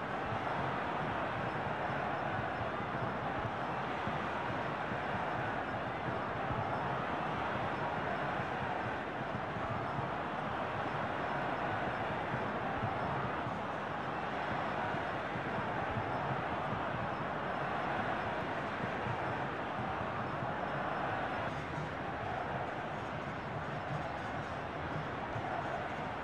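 A stadium crowd roars steadily.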